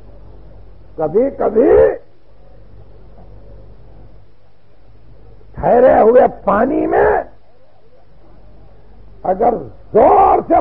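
An elderly man speaks with feeling in short bursts through an old, hissy recording.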